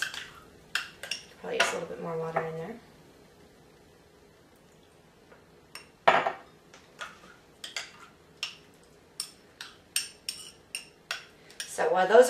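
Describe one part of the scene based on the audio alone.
A spoon clinks against a glass.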